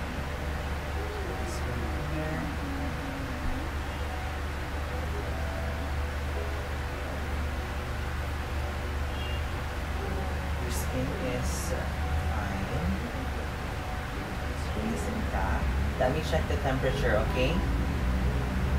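A young man talks quietly nearby.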